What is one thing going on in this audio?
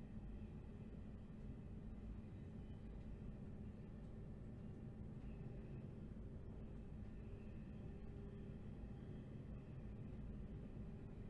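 A train rumbles steadily along the track.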